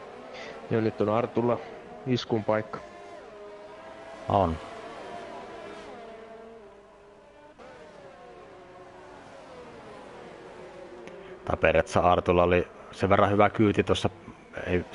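Racing car engines whine at high speed, rising and falling in pitch as the cars shift gears.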